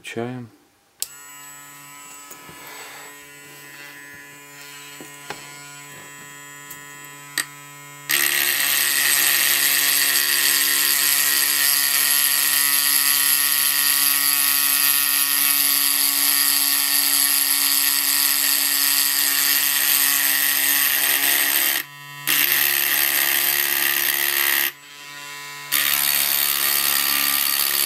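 A small homemade mini drill motor whines at high speed.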